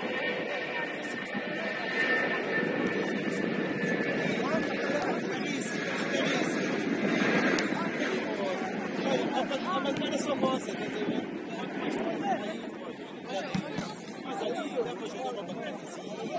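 Young men shout and call out to each other across an open outdoor pitch.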